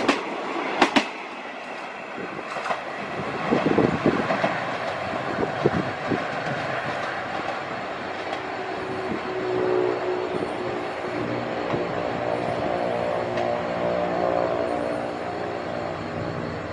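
A passenger train rumbles away into the distance.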